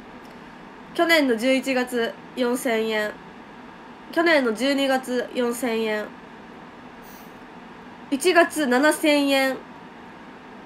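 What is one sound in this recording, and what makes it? A young woman speaks softly and cheerfully into a nearby microphone.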